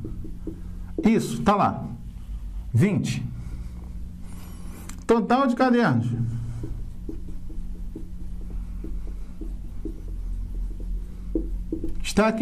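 An elderly man speaks calmly, like a teacher explaining, close by.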